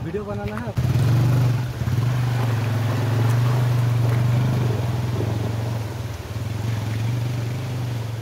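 A shallow stream rushes and gurgles.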